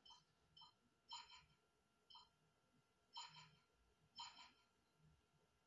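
Short electronic chimes ring out in quick bursts as a score adds up.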